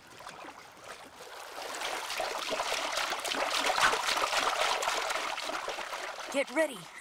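Water splashes as a child swims.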